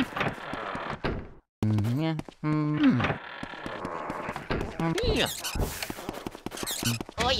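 A heavy wooden door creaks open.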